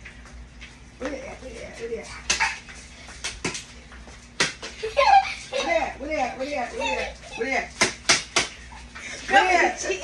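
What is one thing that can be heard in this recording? A woman laughs and talks loudly close by.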